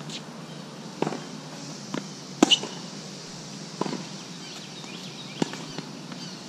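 A tennis racket hits a ball with sharp pops.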